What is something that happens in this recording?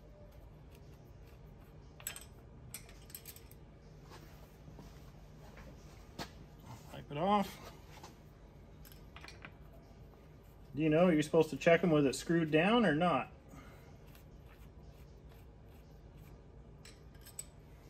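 A hand tool clicks and scrapes against metal.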